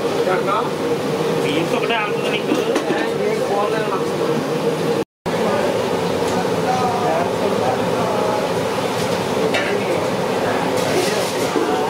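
A metal ladle stirs and scrapes in a pan.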